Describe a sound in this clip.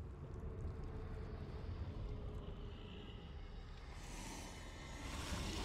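A monstrous creature growls with a deep, low rumble.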